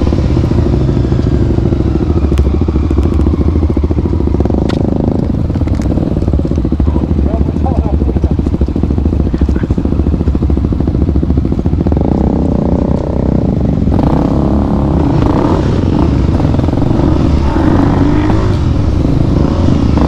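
A motorcycle engine rumbles close by, its pitch rising and falling.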